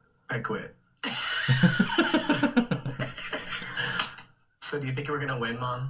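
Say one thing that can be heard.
A second young man talks and laughs close to a microphone.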